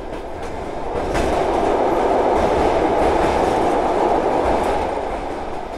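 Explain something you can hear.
A train roars louder while crossing a steel bridge.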